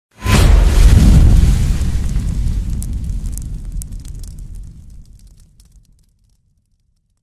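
A fire roars and crackles, then fades away.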